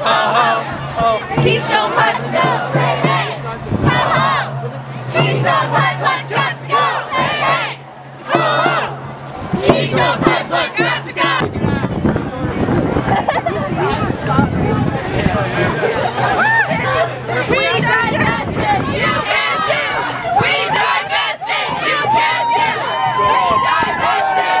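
A crowd of marchers shouts and chants outdoors.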